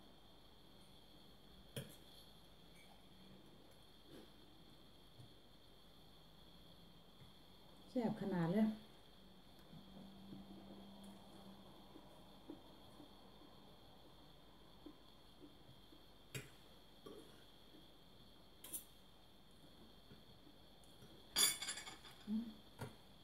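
A woman chews food.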